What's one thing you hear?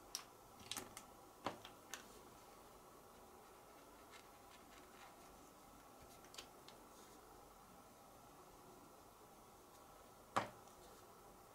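Marker pens click and tap on a tabletop.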